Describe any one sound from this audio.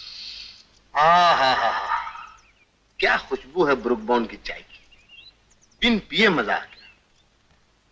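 A young man sings close by in a relaxed voice.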